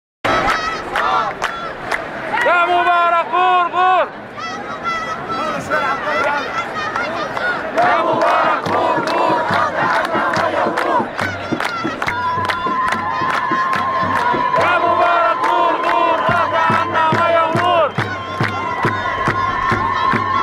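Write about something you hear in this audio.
People in a crowd clap in a steady rhythm.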